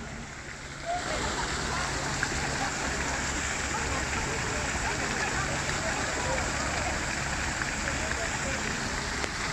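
A fountain splashes and gushes steadily close by.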